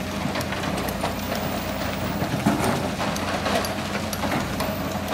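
Rocks clatter into a truck bed.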